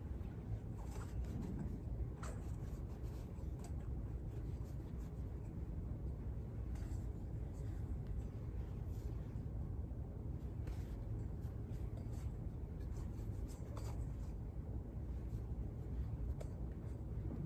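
Metal vessels clink softly against each other.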